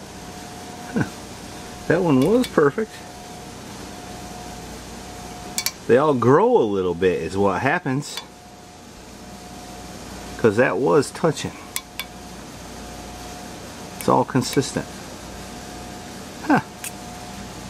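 A metal tool clicks against a metal engine part.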